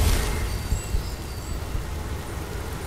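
A magic spell bursts with a whooshing crackle.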